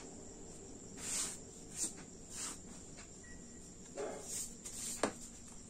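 Hands brush and rustle across cloth.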